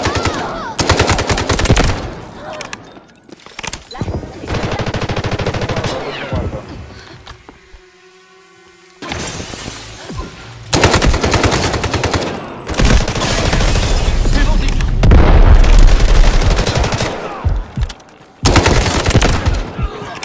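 Rapid bursts of automatic gunfire rattle loudly.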